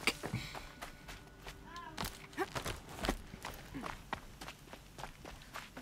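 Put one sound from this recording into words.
Footsteps crunch through snow at a run.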